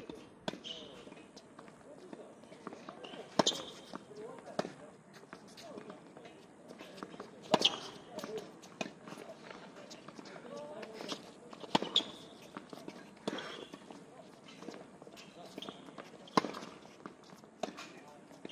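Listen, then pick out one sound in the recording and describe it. Sneakers scuff and squeak on a hard court.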